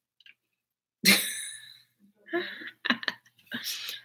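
A woman laughs briefly.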